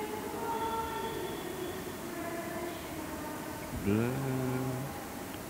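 A middle-aged man speaks calmly into a microphone in a reverberant hall.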